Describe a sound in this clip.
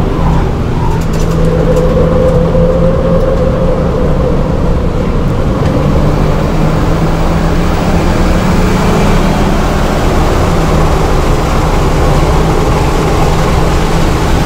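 A turbocharged four-cylinder car engine drones from inside the cabin as the car accelerates.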